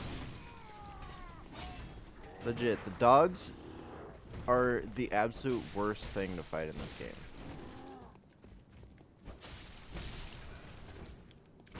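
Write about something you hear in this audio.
Blades slash and thud into flesh in a fight.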